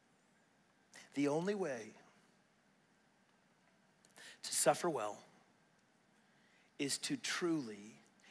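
A middle-aged man speaks calmly and with pauses into a microphone, in a softly echoing hall.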